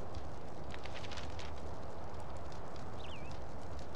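A fire burns with a soft crackle.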